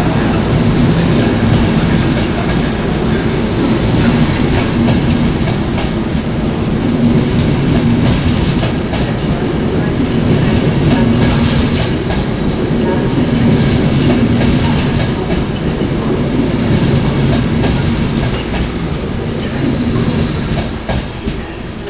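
Train wheels click over the rail joints.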